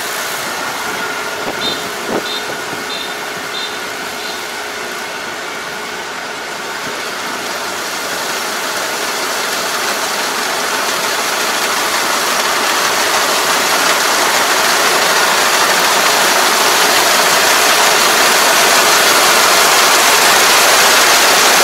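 A harvesting machine's engine rumbles and grows louder as it approaches.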